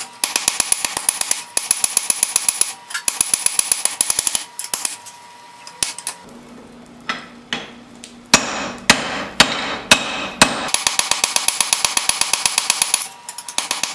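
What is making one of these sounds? A hammer rings rapidly on a steel anvil.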